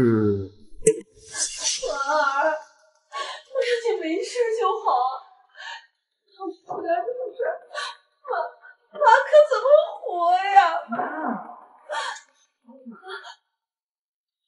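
A middle-aged woman speaks tearfully and with emotion, close by.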